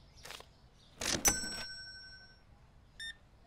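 A cash register drawer slides shut with a clunk.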